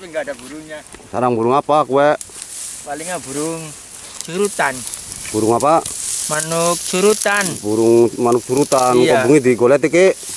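Dry grass rustles and crackles as it is pushed aside.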